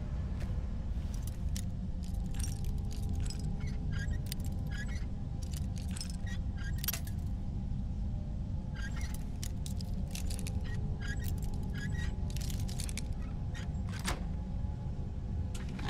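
Metal lock pins click and scrape as a lock is picked.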